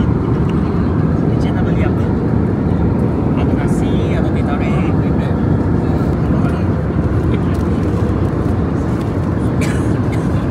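A steady low engine roar fills an aircraft cabin.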